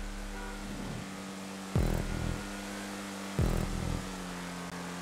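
A race car engine hums steadily at speed.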